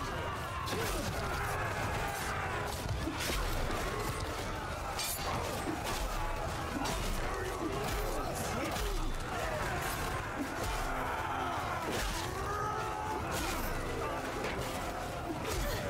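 Swords and axes clash against wooden shields in a fierce fight.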